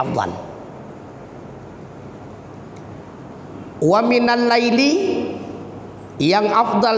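A man speaks into a microphone in a sustained, melodic chanting voice, with pauses.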